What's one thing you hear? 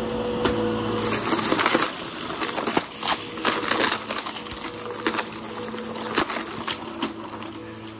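A vacuum cleaner hums loudly as it sucks up debris from a carpet.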